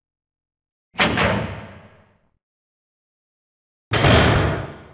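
A heavy metal door rumbles open.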